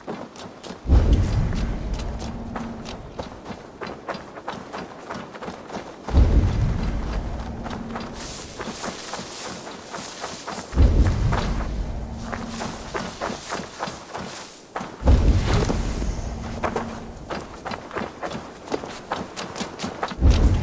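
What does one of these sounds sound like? A deep humming pulse booms and slowly fades, again and again.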